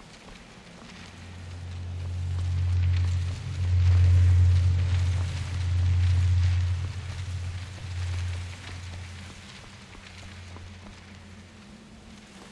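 A deep rumble swells and then fades.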